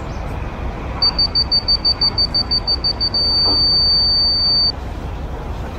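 A laser level beeps rapidly, then sounds one steady tone.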